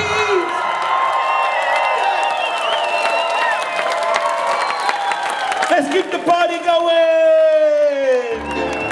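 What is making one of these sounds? A large crowd sings and cheers loudly.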